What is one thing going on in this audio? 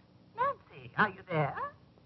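A man talks into a telephone.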